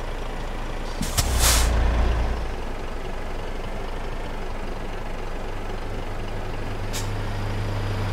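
A truck's air brakes hiss sharply.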